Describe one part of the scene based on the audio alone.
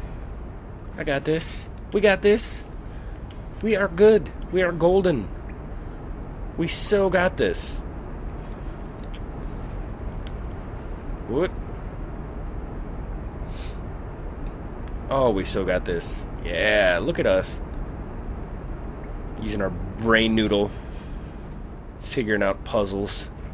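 A young man talks close to a headset microphone.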